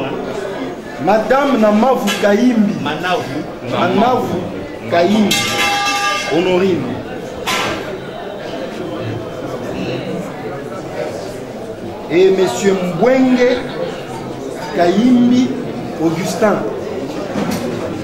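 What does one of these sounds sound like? A man speaks close to a microphone, loudly and with emphasis.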